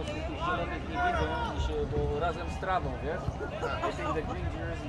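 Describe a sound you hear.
Spectators nearby talk and call out.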